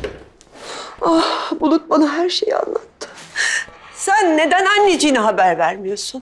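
A middle-aged woman cries out tearfully nearby.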